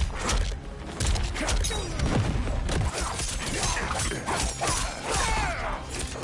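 Heavy punches and kicks land with loud thuds and smacks.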